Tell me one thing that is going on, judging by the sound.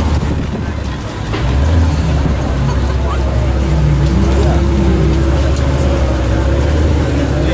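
A sports car engine idles and rumbles deeply.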